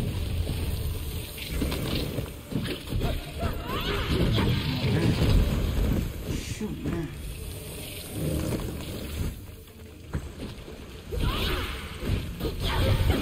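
Sword slashes whoosh and clash in a fight.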